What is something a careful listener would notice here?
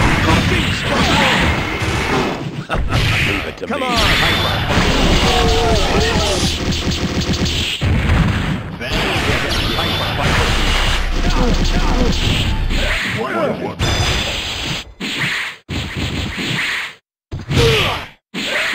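Video game fighting sound effects crash and blast rapidly.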